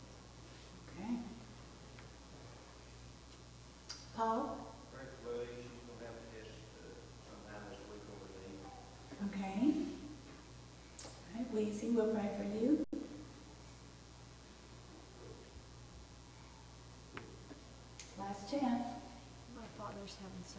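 A woman speaks slowly and calmly into a microphone in an echoing room.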